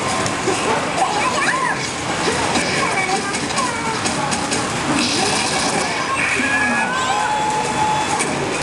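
A fighting game's hits and effects crackle and thump rapidly from a loudspeaker.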